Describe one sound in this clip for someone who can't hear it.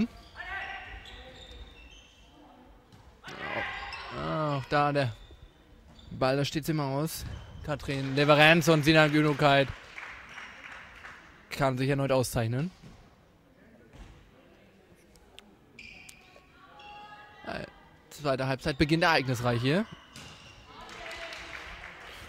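A ball bounces on a hard floor in a large echoing hall.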